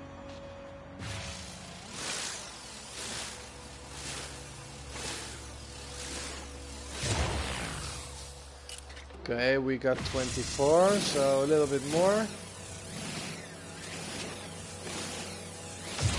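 A mining laser hums with a steady pulsing whine.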